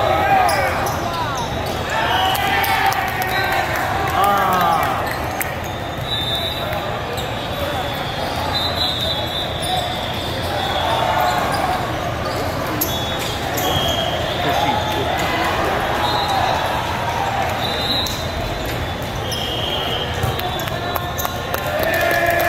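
Young players shout and call to each other.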